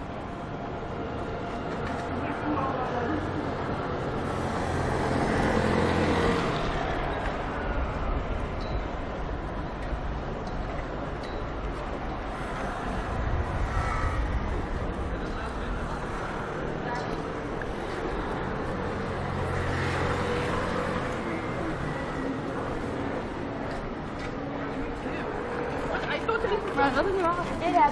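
Steady city traffic rumbles outdoors.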